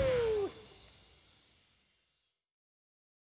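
A video game fanfare ends on a loud flourish and fades away.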